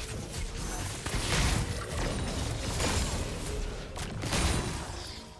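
Game spell effects burst and crackle in a fight.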